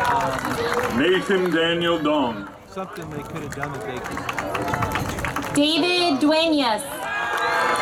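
A crowd cheers and shouts in bursts.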